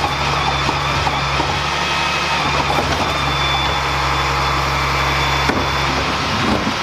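A hydraulic lift whines as it tips a bin.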